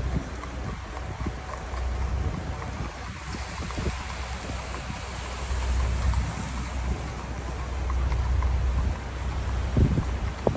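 Horse hooves clop on the street below.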